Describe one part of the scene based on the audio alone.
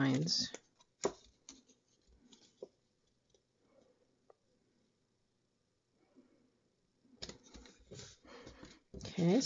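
Card stock rustles and slides on paper.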